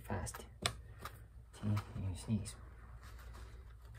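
A paper towel rustles and crinkles.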